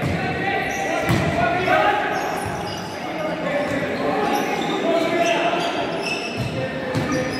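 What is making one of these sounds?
Men shout to each other across the hall.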